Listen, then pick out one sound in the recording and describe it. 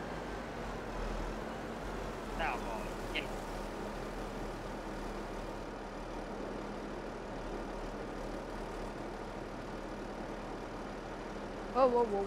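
A wheel loader's engine rumbles steadily.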